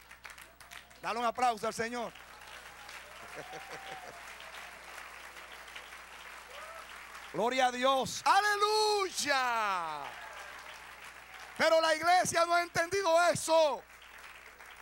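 A middle-aged man sings loudly into a microphone, heard through loudspeakers.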